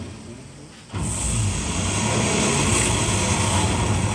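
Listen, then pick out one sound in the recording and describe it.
Racing car engines roar loudly through a television's loudspeakers.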